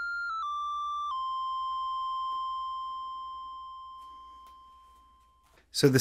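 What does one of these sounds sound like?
A synthesizer plays a steady electronic tone that steps down in pitch and then slowly fades away.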